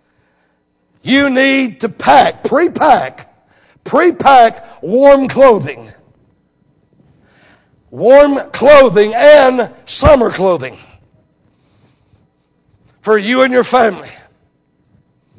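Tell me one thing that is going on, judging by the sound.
A middle-aged man preaches loudly with animation through a microphone, in bursts with pauses.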